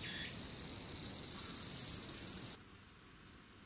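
Water from a sprinkler sprays and hisses steadily.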